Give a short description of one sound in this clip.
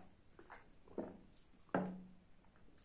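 A glass is set down on a table.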